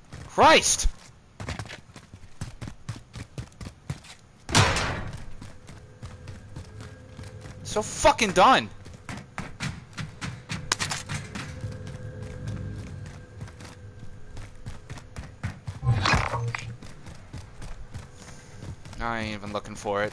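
Footsteps tread quickly on hard ground and metal stairs.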